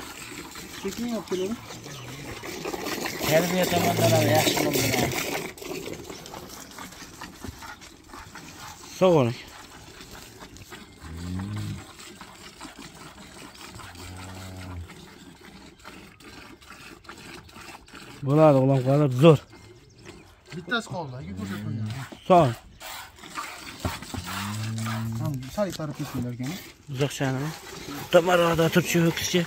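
Cows moo nearby.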